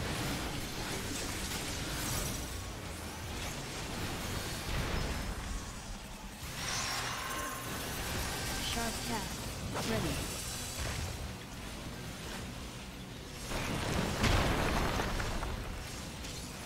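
Magic spells burst and crackle in a battle.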